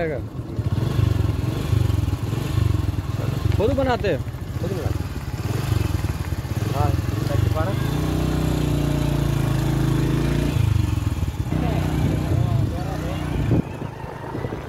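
A motorcycle engine idles nearby with a low, steady rumble.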